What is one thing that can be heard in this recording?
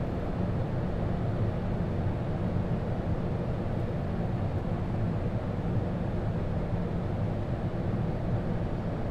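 Jet engines roar with a steady, low rumble.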